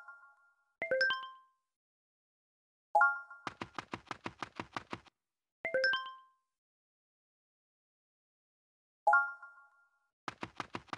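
Bright electronic chimes ring out in short bursts.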